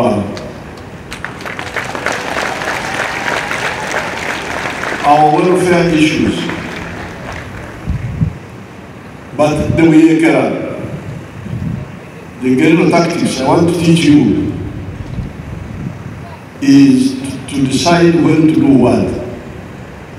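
An elderly man speaks slowly and deliberately into a microphone, heard through loudspeakers.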